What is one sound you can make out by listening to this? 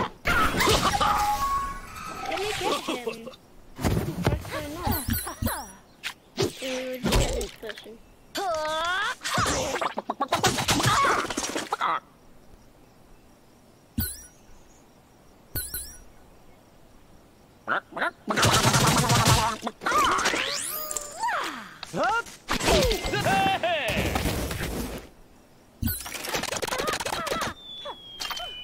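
Video game battle effects clash and chime.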